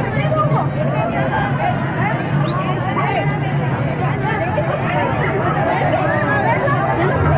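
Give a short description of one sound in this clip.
A large crowd of men and women chatters and shouts loudly outdoors.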